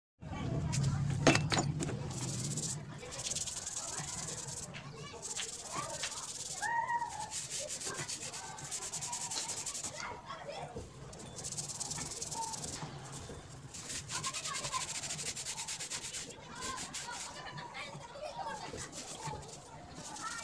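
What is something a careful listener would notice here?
A scouring pad scrubs a metal tap.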